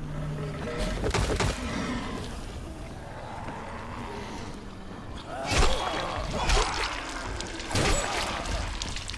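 A machete slashes and thuds into flesh again and again.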